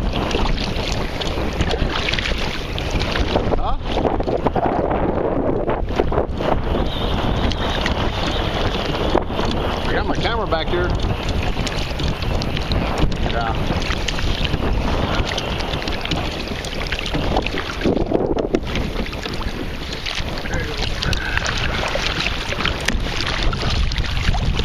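A kayak paddle splashes through the water.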